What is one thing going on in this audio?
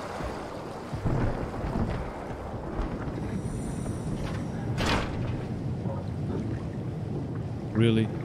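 A man speaks quietly into a close microphone.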